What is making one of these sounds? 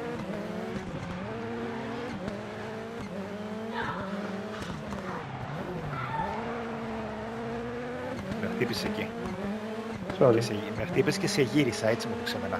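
A racing car engine revs hard, rising and falling as it shifts gears.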